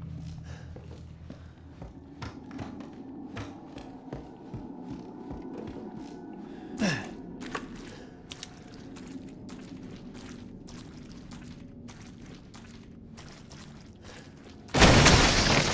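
Footsteps thud slowly across creaking wooden floorboards.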